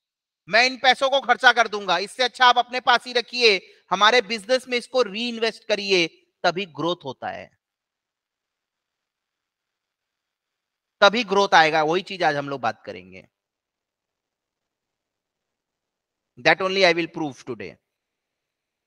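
A man speaks calmly into a close microphone, explaining in bursts with long pauses.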